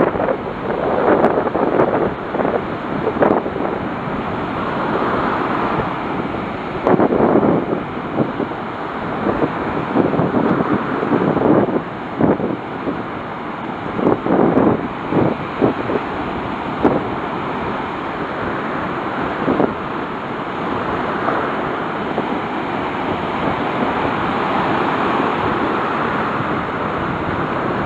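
Wind blows hard across the open beach.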